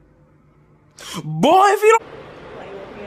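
A young man speaks close to a phone's microphone.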